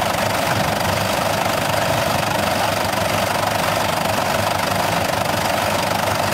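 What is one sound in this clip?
A tractor engine idles steadily nearby.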